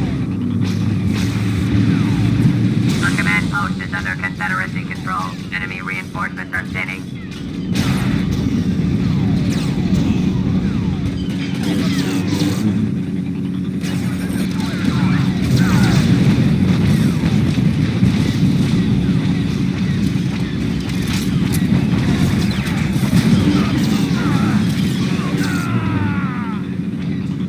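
Laser swords hum and swing with buzzing whooshes.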